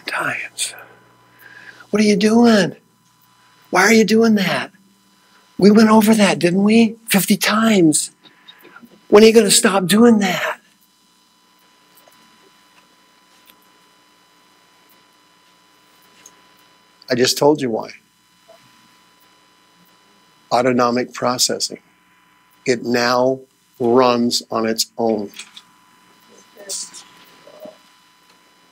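A middle-aged man speaks slowly, with long pauses, through a microphone.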